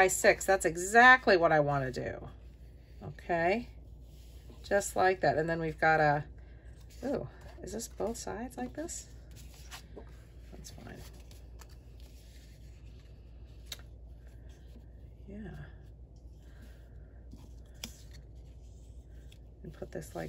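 Paper sheets rustle and slide softly against a surface.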